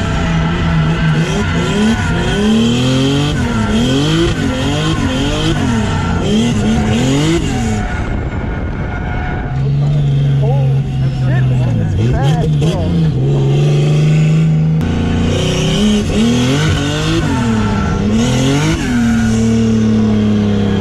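Tyres squeal loudly as a car slides.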